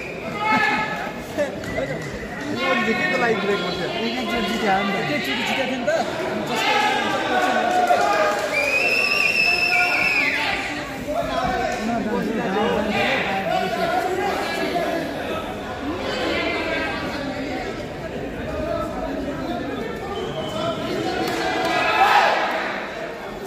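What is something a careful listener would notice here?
A crowd chatters in the background of a large echoing hall.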